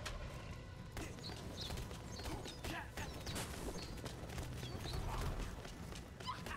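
Magic projectiles zap and burst in quick bursts.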